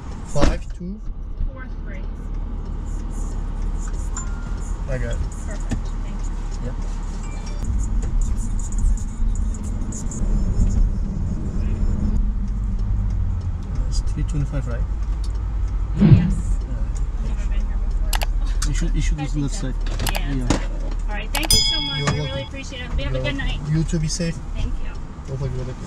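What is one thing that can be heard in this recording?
A man talks calmly nearby inside a car.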